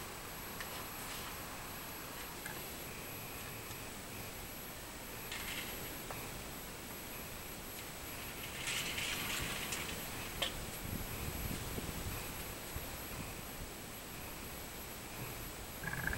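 Wind rustles through leafy tree branches.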